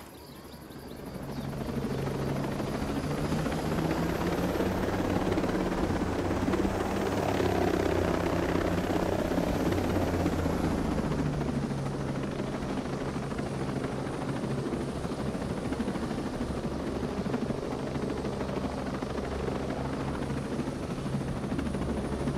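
A helicopter's rotor whirs and thumps steadily as it starts up and flies.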